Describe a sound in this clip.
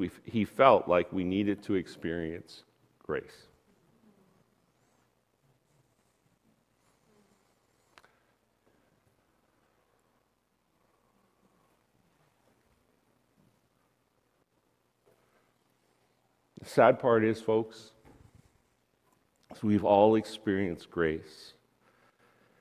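A man speaks calmly through a microphone in a large room, pausing at length between phrases.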